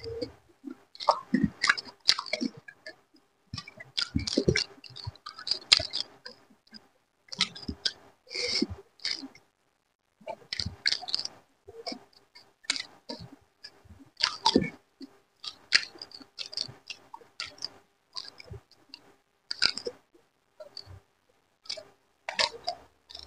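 A man chews and smacks his lips loudly, close to the microphone.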